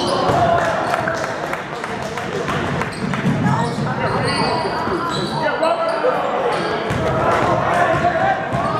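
A crowd cheers and shouts in an echoing gym.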